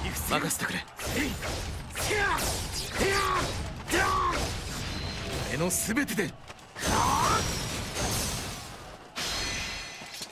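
Swords swish and clash in rapid strikes.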